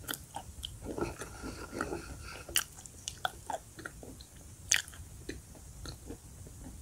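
A woman chews crunchy chalk with soft wet mouth sounds, very close.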